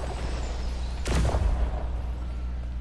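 A magical burst whooshes and crackles.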